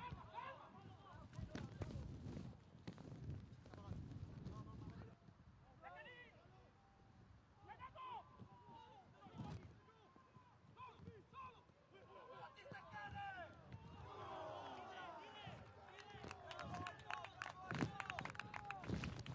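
Footballers shout to each other across an open pitch.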